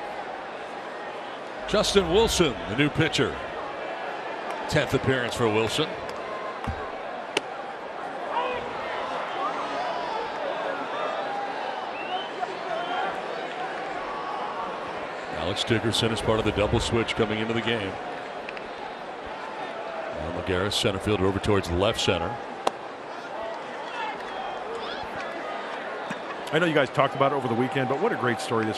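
A crowd murmurs in a large open stadium.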